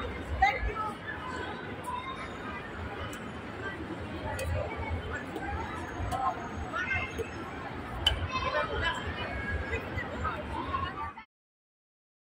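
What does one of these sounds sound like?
Young girls chatter and call out nearby outdoors.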